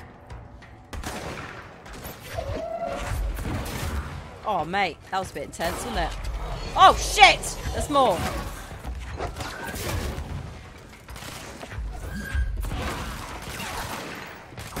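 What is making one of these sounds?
Gunfire and explosions boom in rapid bursts.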